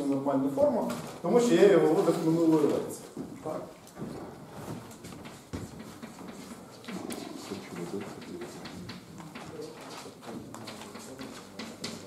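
A man speaks calmly in a slightly echoing room.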